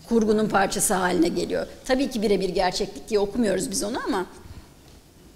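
A woman asks a question into a microphone, heard through a loudspeaker in a hall.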